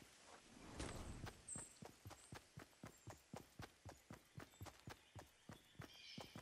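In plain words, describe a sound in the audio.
Footsteps thud rapidly on grass.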